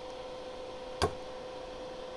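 A small electronic part snaps free from a circuit board with a sharp click.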